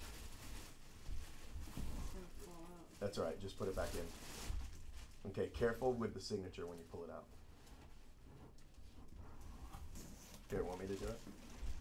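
A plastic bag crinkles as hands handle it.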